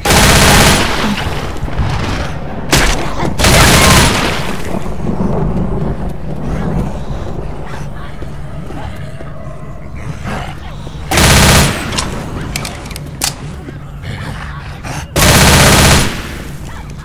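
A submachine gun fires loud rapid bursts.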